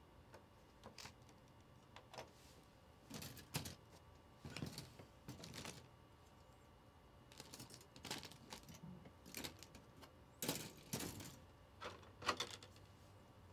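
Small plastic pieces click and clatter on a table.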